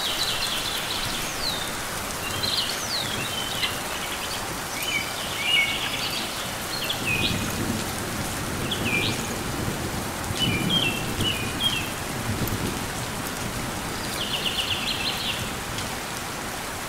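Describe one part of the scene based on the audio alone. A small bird chirps in short, high squeaky calls.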